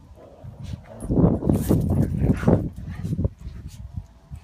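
Small dogs growl and yip as they play close by.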